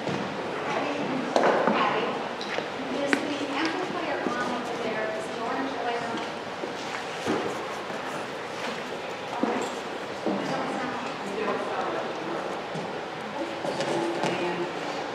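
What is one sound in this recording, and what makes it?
An elderly man speaks calmly in an echoing room.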